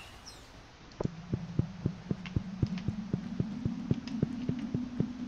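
Footsteps tap quickly and evenly on stone.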